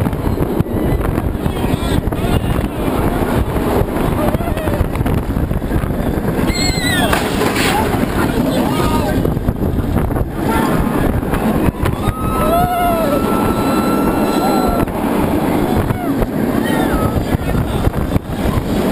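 A roller coaster rumbles and clatters along its track.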